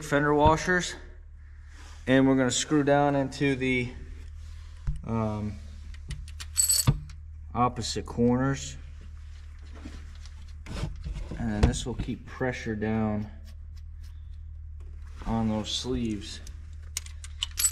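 Metal parts clink and tap against an engine.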